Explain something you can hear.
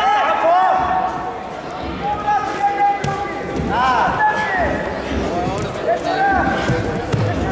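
Wrestlers' bodies thump and scuffle on a mat.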